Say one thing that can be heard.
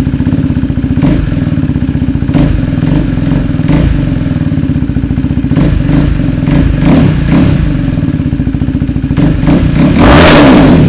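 A motorcycle engine revs up in short bursts and roars loudly.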